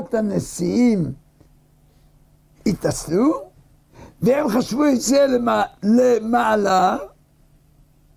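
An elderly man speaks with animation into a close microphone.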